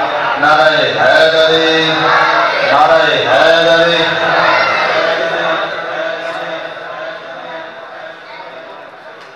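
A group of men chant together loudly in an echoing hall, then slowly fade.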